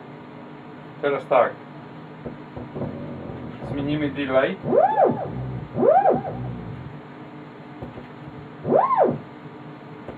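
A radio receiver whistles and squeals as its dial is turned.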